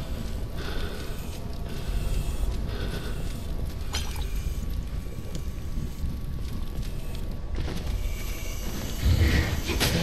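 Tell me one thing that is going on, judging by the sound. Flames crackle and flicker steadily.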